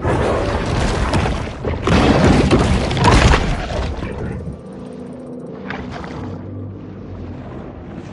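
Water rumbles and swirls in a low, muffled wash.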